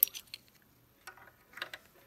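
A key clicks in a lock.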